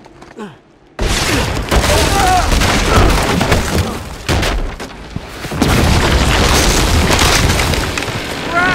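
A loud explosion booms and rumbles with crackling debris.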